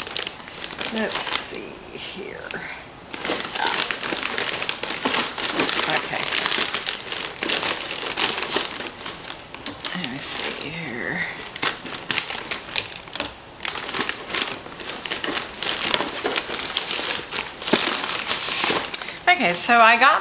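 Plastic packaging crinkles and rustles close by.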